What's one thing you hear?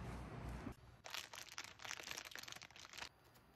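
A plastic wrapper crinkles.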